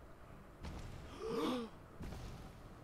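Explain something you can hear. A man gasps in surprise.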